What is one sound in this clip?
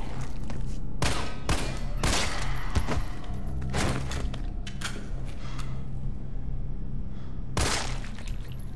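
A handgun fires sharp, loud shots.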